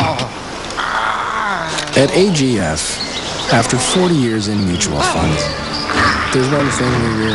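An elderly man speaks in a rough voice, close by.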